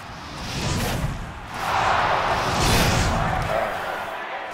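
A fire spell whooshes and roars.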